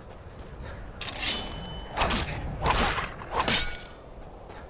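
A fox yelps in pain.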